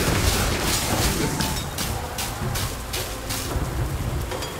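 Magic spells crackle and burst in rapid bursts.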